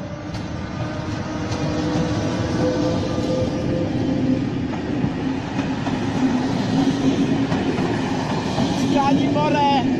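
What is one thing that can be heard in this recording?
Wheels of passenger coaches clatter and rumble over rail joints.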